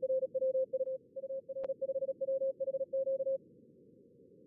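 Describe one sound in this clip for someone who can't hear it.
Morse code beeps out quickly in a steady, clear tone.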